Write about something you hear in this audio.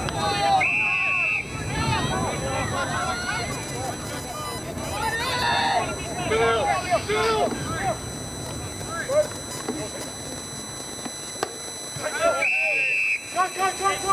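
An umpire blows a whistle.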